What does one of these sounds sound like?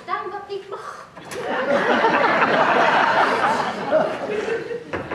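A woman speaks on a stage, heard from the audience in a hall.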